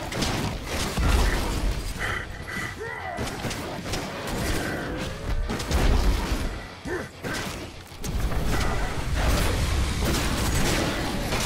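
Heavy low explosions thump and rumble.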